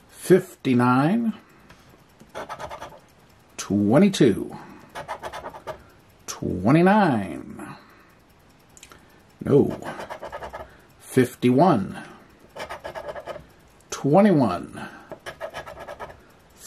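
A coin-like scraper scratches the coating off a scratch-off lottery ticket.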